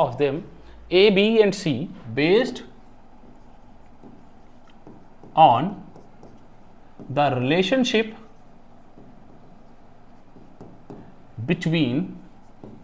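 A man speaks calmly in short phrases with pauses, close by.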